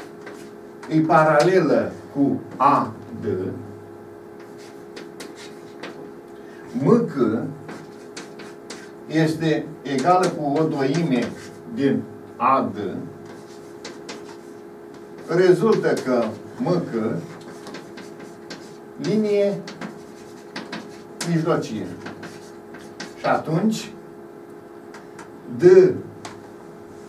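An elderly man speaks calmly in short bursts, explaining.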